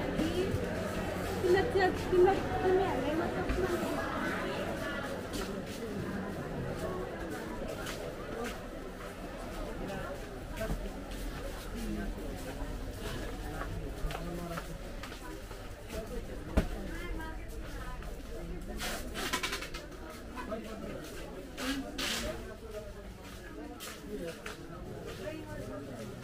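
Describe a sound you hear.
A crowd murmurs and chatters all around.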